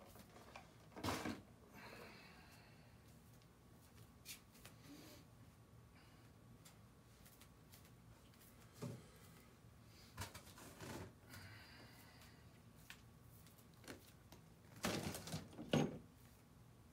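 Knocks and bumps sound in a small room.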